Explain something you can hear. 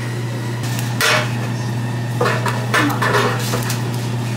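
A paper cupcake liner crinkles in gloved hands.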